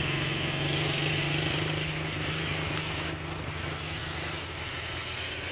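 A car engine idles nearby.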